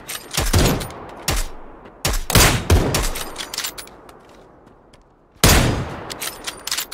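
Rifle shots crack loudly and echo away.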